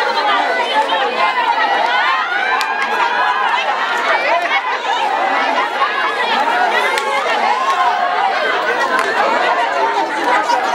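A crowd of women chatters and calls out loudly close by, outdoors.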